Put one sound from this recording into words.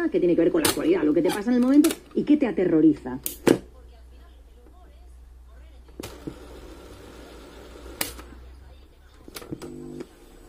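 Plastic buttons on a cassette player click as they are pressed.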